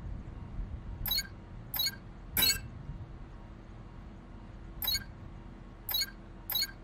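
Keypad buttons beep as a code is entered.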